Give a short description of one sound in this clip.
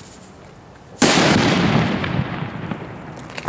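A firecracker explodes with a loud bang.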